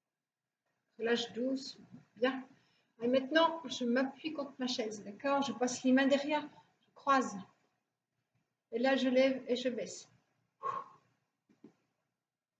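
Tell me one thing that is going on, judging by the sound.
A woman speaks calmly and clearly, as if giving instructions.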